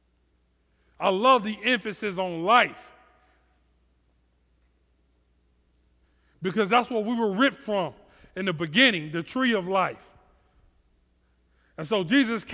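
A man speaks with animation through a headset microphone, pausing between phrases.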